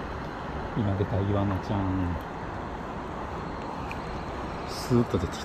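Water laps gently around a fishing net.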